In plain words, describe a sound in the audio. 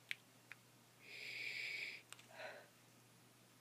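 A young woman exhales vapour.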